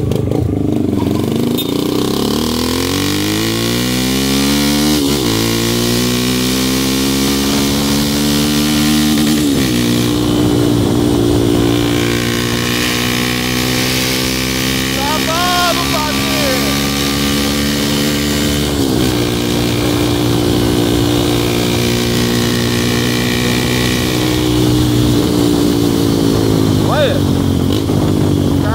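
A motorcycle engine revs up and shifts through gears as the bike accelerates.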